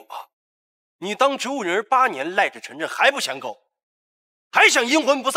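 A young man speaks sharply and scornfully.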